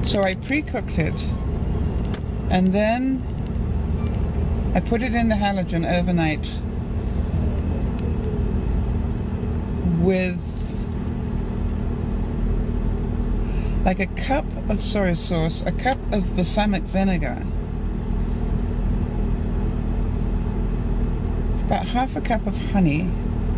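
An elderly woman talks calmly and close by.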